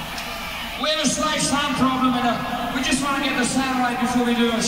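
A man sings loudly through a microphone.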